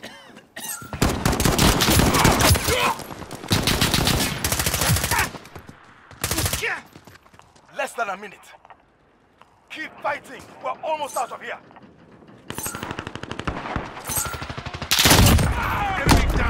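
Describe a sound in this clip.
A rifle fires rapid bursts of gunfire at close range.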